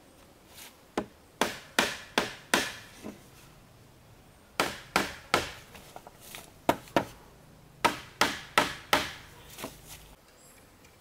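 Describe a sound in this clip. A mallet knocks sharply on bamboo, over and over.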